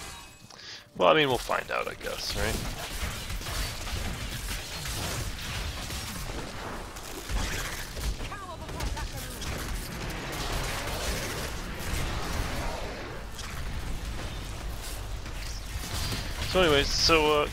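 Spells crackle and explode in a busy game battle.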